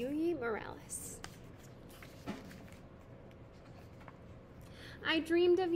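A young woman speaks calmly and close by, reading aloud.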